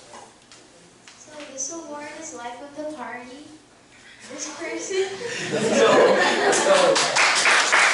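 A young woman speaks with animation through a microphone in a large echoing room.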